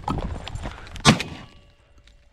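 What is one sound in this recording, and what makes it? A shotgun fires a single sharp shot outdoors.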